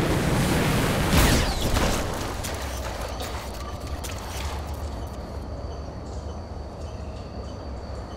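Heavy metal footsteps thud on the ground.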